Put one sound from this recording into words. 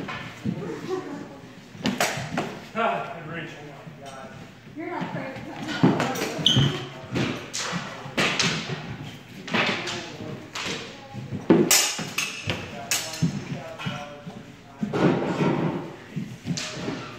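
Feet stamp and shuffle on a wooden floor.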